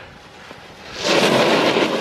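A snowboard scrapes across snow close by.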